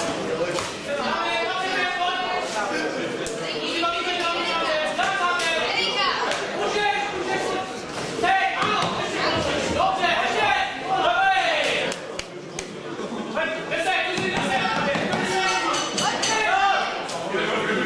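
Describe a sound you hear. Gloved punches and kicks thud against bodies.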